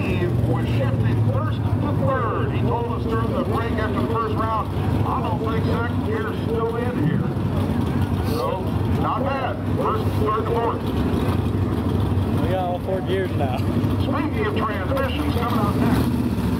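Men talk and call out outdoors at a distance.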